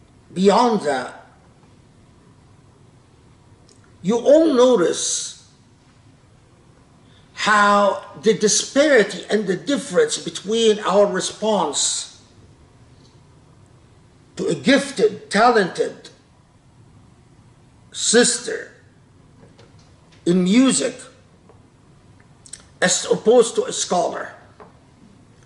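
An elderly man speaks with animation close to a microphone, in bursts with pauses.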